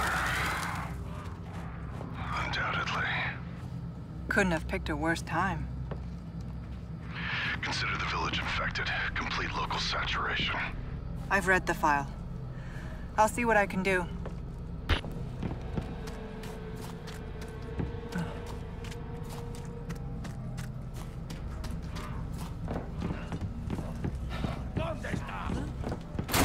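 Footsteps crunch on gravel and thud on wooden boards.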